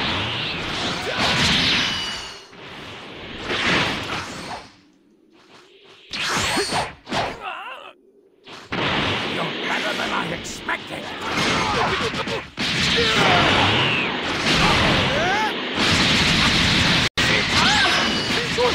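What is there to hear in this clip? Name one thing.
Energy blasts whoosh and crackle in a fast fight.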